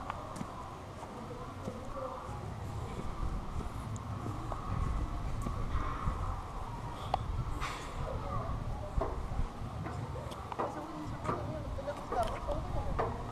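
Footsteps scuff on stone paving outdoors.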